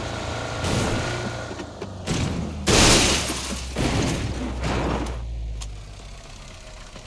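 A car engine hums low and steady, then fades.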